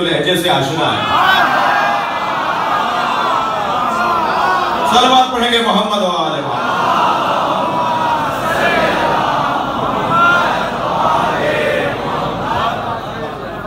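A crowd of men call out together.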